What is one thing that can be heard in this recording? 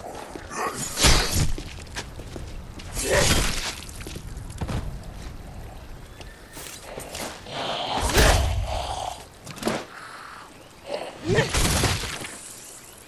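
A blade hacks into flesh with heavy, wet thuds.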